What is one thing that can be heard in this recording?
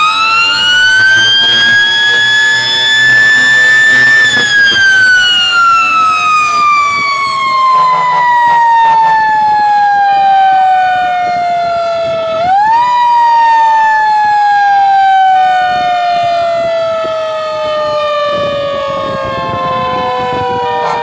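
A fire engine siren wails loudly close by, slowly rising and falling.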